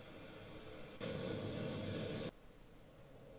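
Jet engines roar loudly close by.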